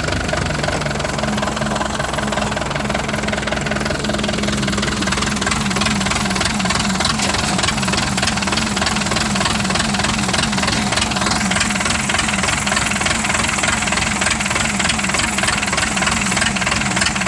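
A vehicle rattles and clanks over a bumpy dirt track.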